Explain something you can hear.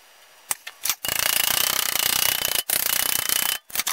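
A metal file rasps back and forth across metal.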